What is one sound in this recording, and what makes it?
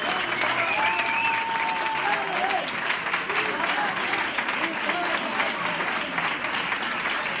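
A crowd claps in rhythm in an echoing hall.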